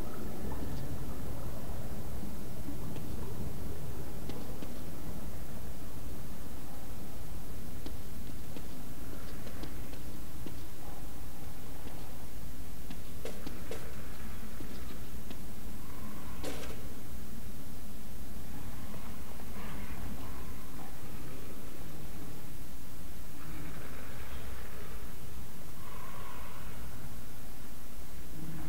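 Footsteps walk slowly over a hard stone floor.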